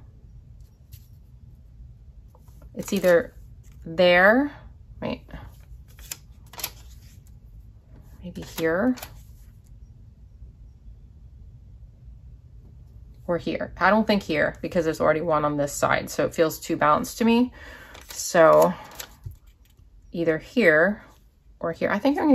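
Paper rustles softly as a sticker is handled.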